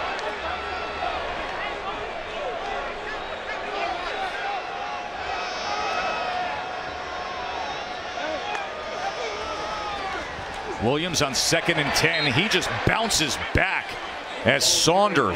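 A large stadium crowd cheers and chatters loudly.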